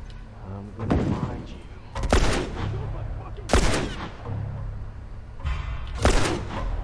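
A pistol fires loud single shots a few seconds apart.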